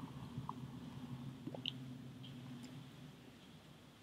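A man exhales a long breath.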